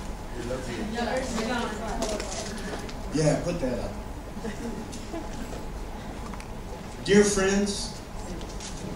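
A middle-aged man speaks with animation through a microphone and loudspeakers in an echoing hall.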